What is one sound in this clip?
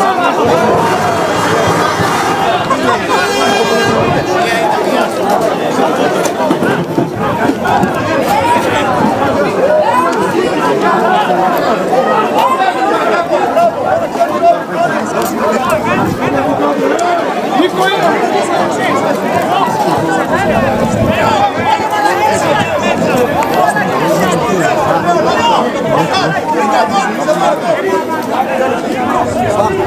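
Several men shout and argue at a distance outdoors.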